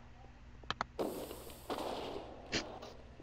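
An explosion bursts with a crackling rumble.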